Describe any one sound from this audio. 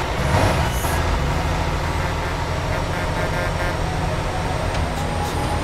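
A vehicle engine drones steadily at speed.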